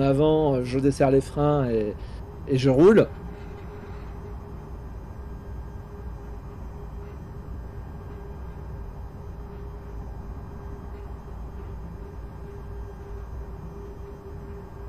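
A train rolls steadily along the rails with a low rumble.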